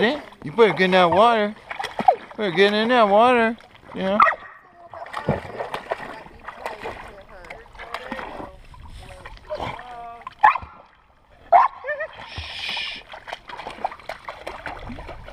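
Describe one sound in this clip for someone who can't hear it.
Water laps and gurgles over rocks close by.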